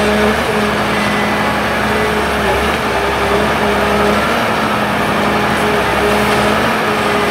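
A forestry machine rolls slowly over crackling branches.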